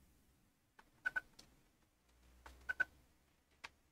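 Short electronic beeps sound from a computer game.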